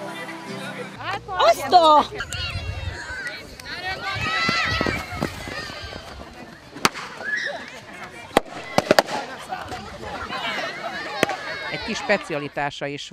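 Children shout and cheer outdoors.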